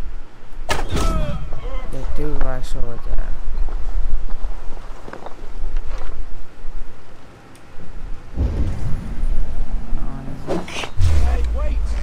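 Footsteps crunch softly on roof tiles.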